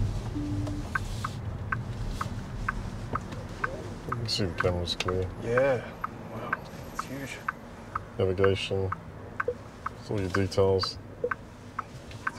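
A turn signal ticks steadily inside a car.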